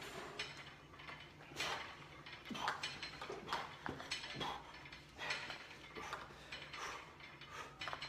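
A man breathes hard and strains with effort close by.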